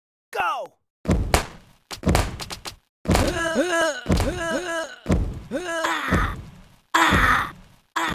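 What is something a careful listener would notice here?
Cartoon thuds burst out again and again.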